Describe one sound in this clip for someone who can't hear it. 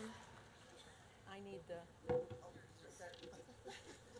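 A second older woman speaks into a microphone.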